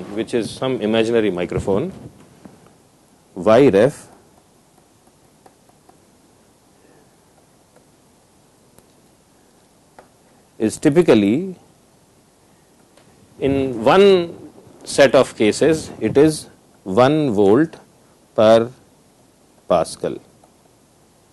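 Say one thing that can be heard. A man speaks with animation into a clip-on microphone, in pauses.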